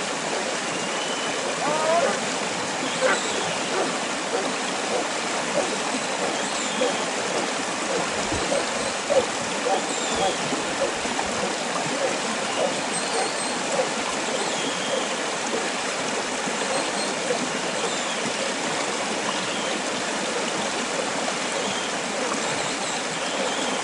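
Sheep bleat faintly in the distance.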